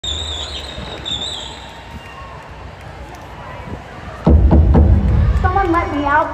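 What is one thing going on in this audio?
A large crowd cheers and screams outdoors.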